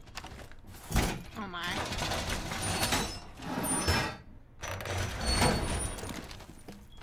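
A heavy metal panel clanks and scrapes into place against a wall.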